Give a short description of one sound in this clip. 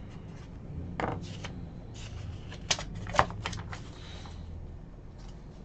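Hands handle a plastic-wrapped card pack with crinkles and clicks.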